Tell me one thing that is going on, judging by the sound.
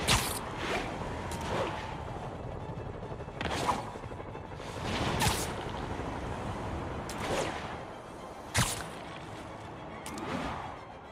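Web lines shoot out with sharp whooshing snaps again and again.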